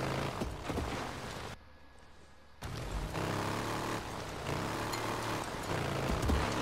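A motorcycle engine rumbles and revs while riding over rough ground.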